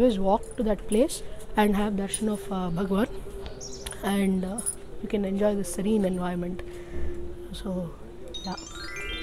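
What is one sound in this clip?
A young woman speaks calmly and close by into a microphone.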